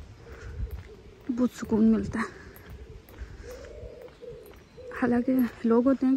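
Footsteps tread steadily on a paved footpath.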